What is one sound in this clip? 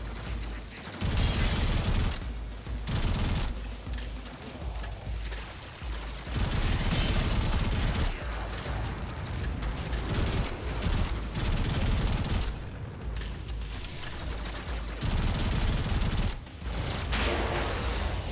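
Rapid gunfire blasts in bursts.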